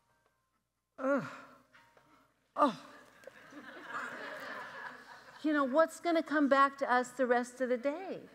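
A middle-aged woman speaks with animation through a microphone in a reverberant room.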